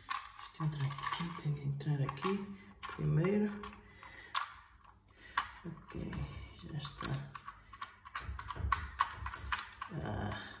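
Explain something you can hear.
Small plastic parts click and rattle close by.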